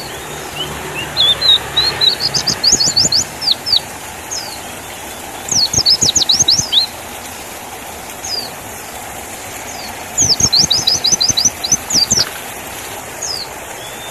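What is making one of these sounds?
A small bird sings close by in quick, high chirping bursts.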